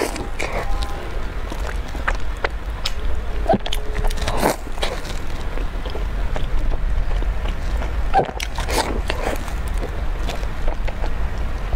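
Soft bread squishes as it is dipped and squeezed in milk.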